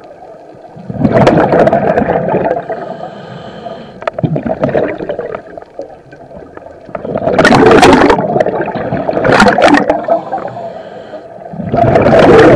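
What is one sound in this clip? Bubbles from a diver's breathing rush and gurgle in loud bursts underwater.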